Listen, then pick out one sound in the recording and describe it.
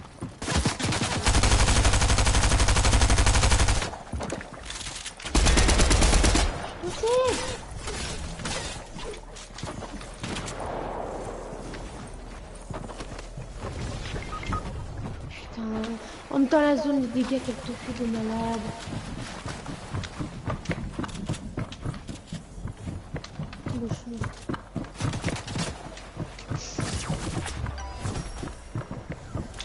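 Game gunfire and building sounds clatter in quick bursts.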